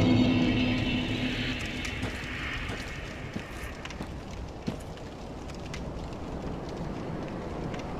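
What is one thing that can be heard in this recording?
Footsteps crunch over rubble.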